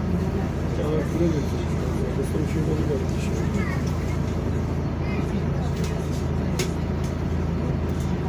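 Tyres rumble on the road beneath a moving bus.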